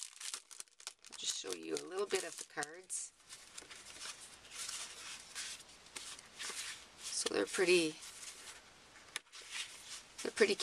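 Plastic packaging and paper cards rustle as they are handled.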